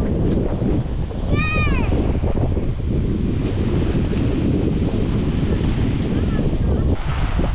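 Wind blows hard outdoors.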